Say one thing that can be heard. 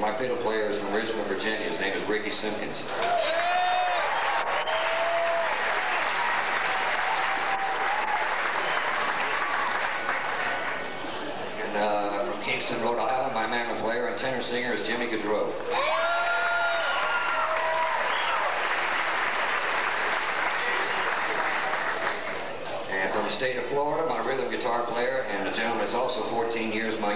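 A bluegrass band plays lively acoustic music.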